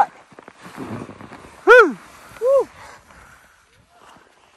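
A snowboard carves through powder snow.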